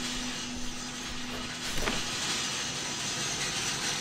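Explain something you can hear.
A truck door opens and slams shut.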